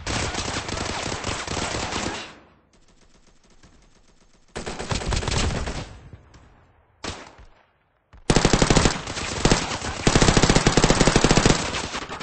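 Rapid gunfire rattles in fast bursts.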